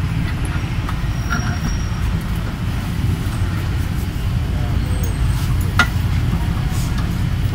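Metal parts clink and knock.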